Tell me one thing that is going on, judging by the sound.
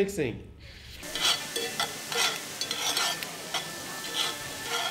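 Noodles sizzle in a hot pan.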